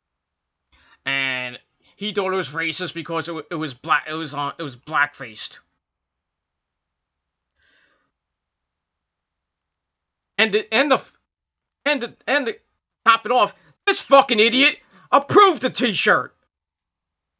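A man talks with animation close to a microphone, pausing now and then.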